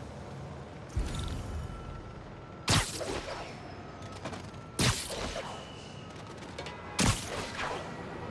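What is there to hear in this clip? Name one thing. A web line zips and snaps several times in quick bursts.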